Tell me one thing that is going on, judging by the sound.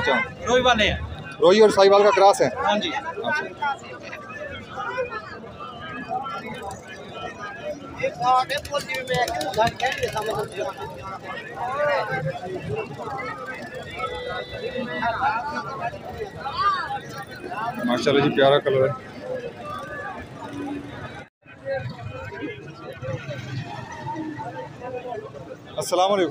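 A crowd of men talks and calls out all around outdoors.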